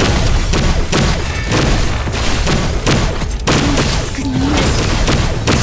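Sword slashes and impacts clash rapidly in a game fight.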